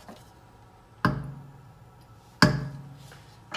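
A wooden spoon knocks against a metal saucepan.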